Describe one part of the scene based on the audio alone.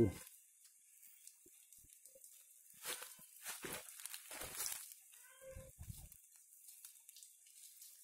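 Leaves rustle as a hand pushes them aside.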